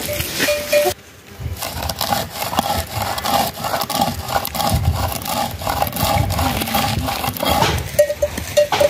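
Stone grinds rhythmically against stone.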